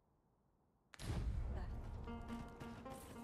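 Hooves of a horse thud on sand.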